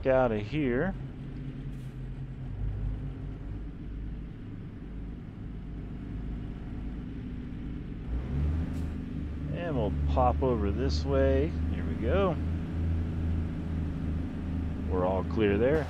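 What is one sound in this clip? A truck engine rumbles low and steadily, then grows louder as the truck pulls away.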